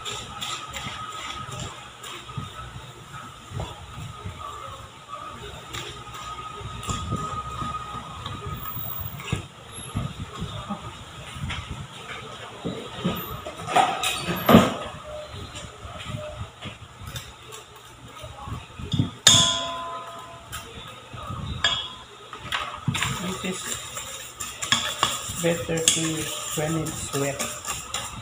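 A silicone spatula stirs and scrapes thick cookie dough in a stainless steel bowl.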